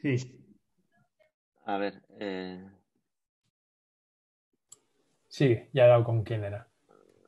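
A middle-aged man speaks calmly over an online call, with pauses.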